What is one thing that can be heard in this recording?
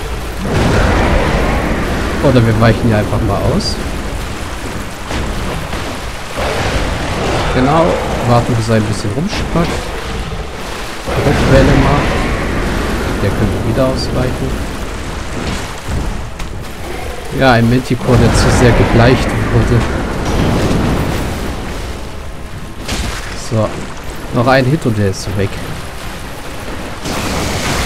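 Large wings beat with heavy whooshes.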